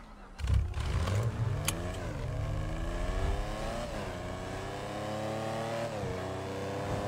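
A car engine revs up and shifts gears as it speeds along.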